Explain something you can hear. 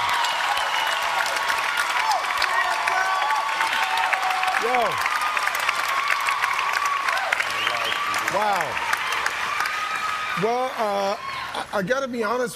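A large audience claps steadily.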